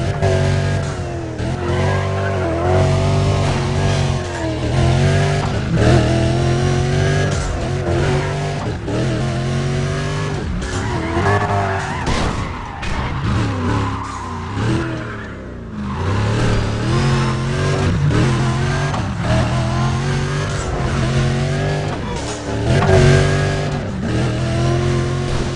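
A sports car engine roars loudly, revving up and down as gears shift.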